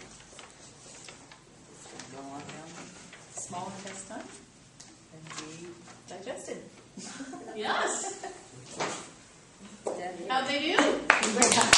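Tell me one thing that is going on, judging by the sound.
An older woman speaks in reply, calmly and with expression.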